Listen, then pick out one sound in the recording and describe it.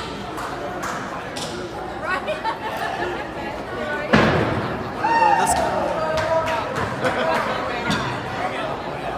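A crowd talks and cheers in a large echoing hall.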